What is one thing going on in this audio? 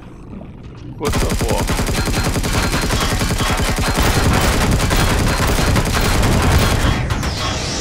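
A gun fires rapidly in bursts.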